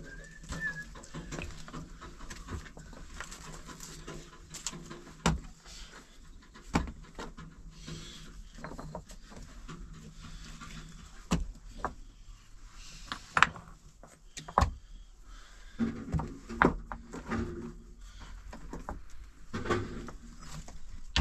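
Stones knock and clatter as they are moved by hand.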